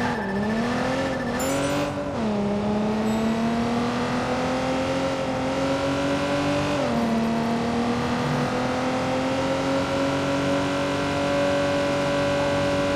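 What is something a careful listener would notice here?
Tyres hiss on the road.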